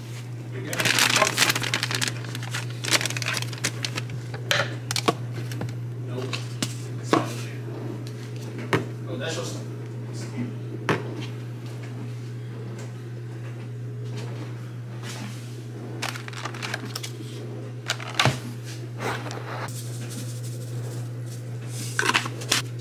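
Containers and packets knock and rustle as they are handled.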